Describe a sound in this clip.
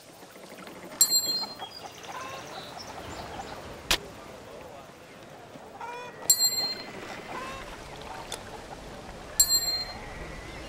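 Armour pieces clink sharply as they are put on, several times.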